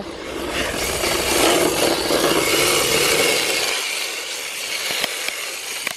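Small tyres squeal as a toy car slides around a corner.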